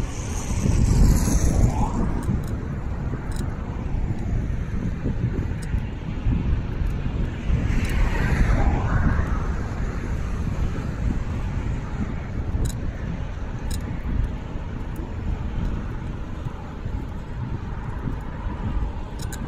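Bicycle tyres hum on smooth pavement.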